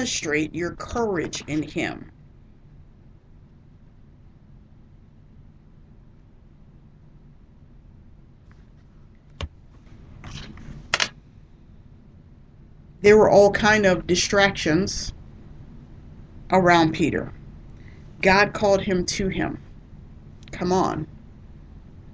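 A woman speaks calmly into a microphone, in short bursts with pauses.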